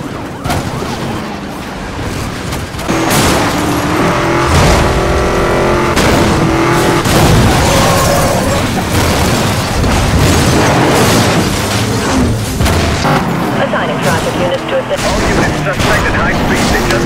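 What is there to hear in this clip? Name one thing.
A car engine roars at high revs.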